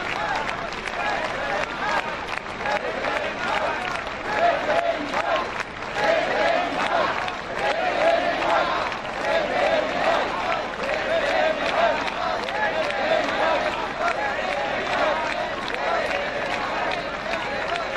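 A large outdoor crowd sings together loudly and steadily.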